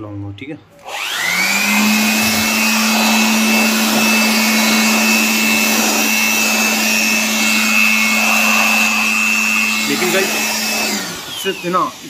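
A vacuum cleaner whirs loudly with a steady hum, then winds down.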